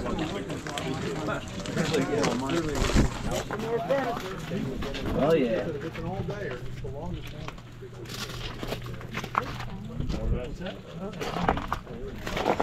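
Several men talk nearby in casual conversation.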